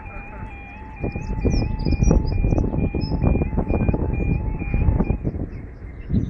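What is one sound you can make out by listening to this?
A level crossing alarm sounds with a rapid warbling tone, then stops.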